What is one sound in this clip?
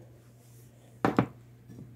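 A plastic measuring cup is set down with a light knock.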